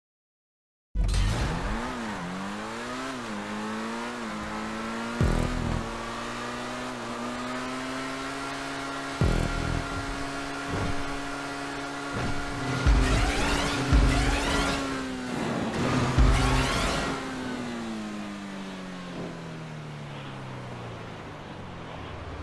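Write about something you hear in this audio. A racing car engine roars and changes pitch as it shifts gears.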